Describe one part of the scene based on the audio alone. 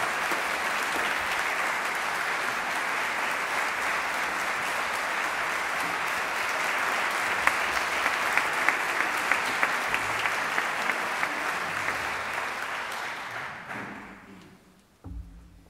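A large audience applauds loudly in a big hall, then the clapping fades away.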